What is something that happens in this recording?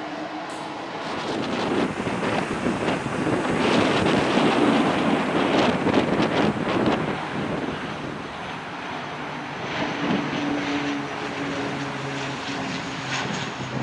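A propeller plane drones loudly as it passes close by on its approach.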